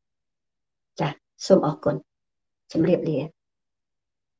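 A middle-aged woman speaks calmly into a microphone, in short phrases.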